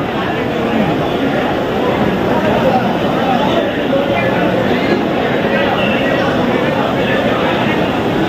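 A crowd of men talks and cheers loudly.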